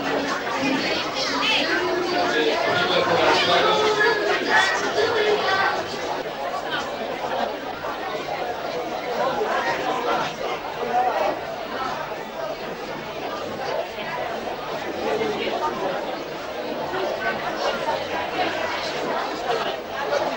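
A crowd of men and women chatters in a large room.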